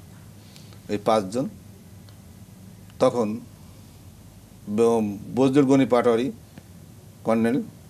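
An elderly man speaks with animation into a microphone, in short bursts.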